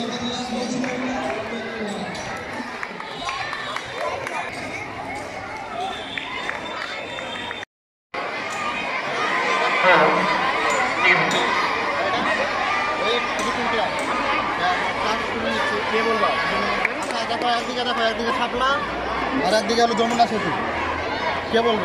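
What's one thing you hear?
A crowd of children chatters outdoors.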